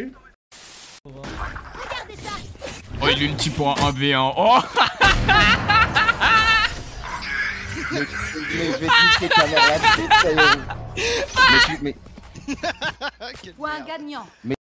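A man shouts and laughs excitedly into a microphone.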